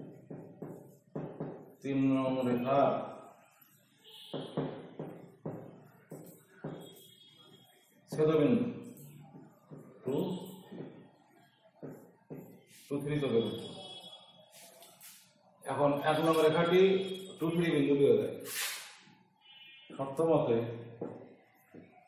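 An elderly man speaks calmly, explaining, close by.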